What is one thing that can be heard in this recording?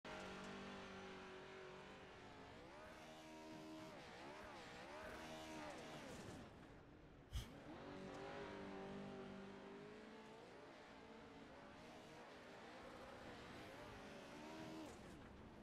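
A truck engine roars and revs up and down.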